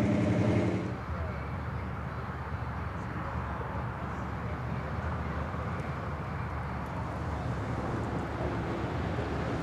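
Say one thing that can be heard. A car engine rumbles low as the car rolls slowly closer.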